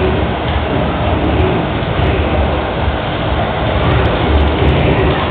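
Fighting game sound effects of punches and blasts play from a loudspeaker.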